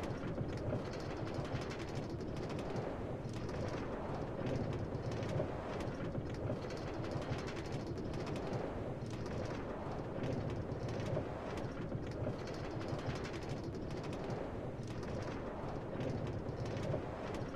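A minecart rumbles steadily along rails.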